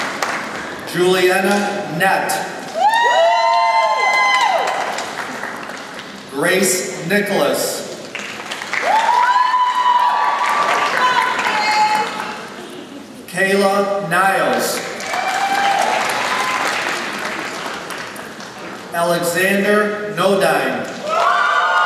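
A man reads out names over a loudspeaker in a large echoing hall.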